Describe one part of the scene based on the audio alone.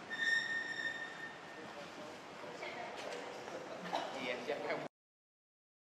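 Adult men and women chat nearby in a large echoing hall.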